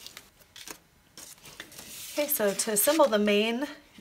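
Cardboard pieces are set down and slid across a table.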